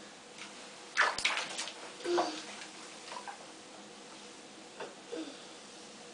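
Water splashes in a bathtub.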